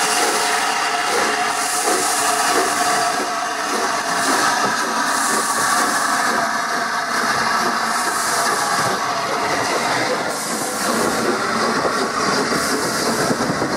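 A steam locomotive chuffs rhythmically as it rolls past close by.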